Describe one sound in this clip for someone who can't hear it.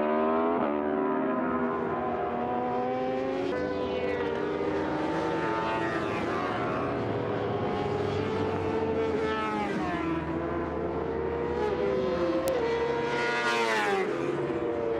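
Motorcycle engines scream at high revs, rising and falling in pitch as the bikes change gear and pass by.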